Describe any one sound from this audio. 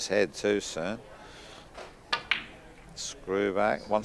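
Billiard balls click together as a cue strikes them.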